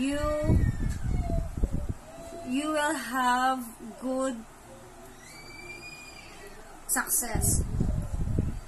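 A young girl sings close by.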